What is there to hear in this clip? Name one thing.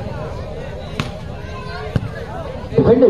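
A ball is struck with a hand.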